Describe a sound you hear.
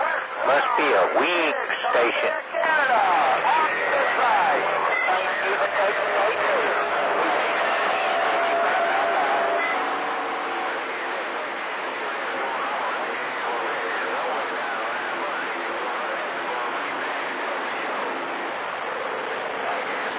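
A radio receiver hisses and crackles with static.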